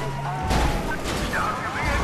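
A car crashes with a loud bang.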